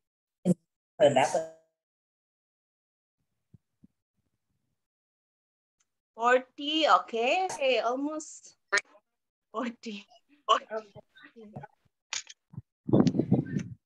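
A young child speaks with animation through an online call.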